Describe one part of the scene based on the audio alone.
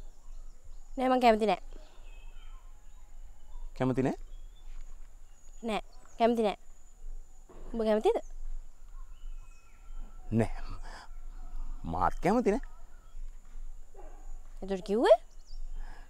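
A young woman answers calmly close by.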